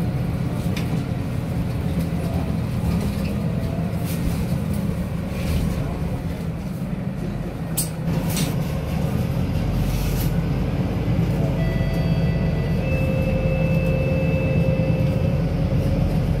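Bus tyres roll over the road with a steady rush.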